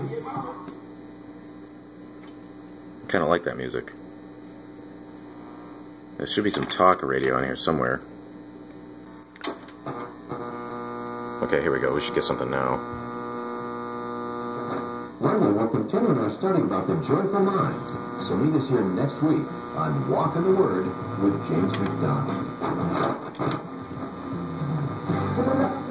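An old radio hums and crackles with static as its dial is tuned.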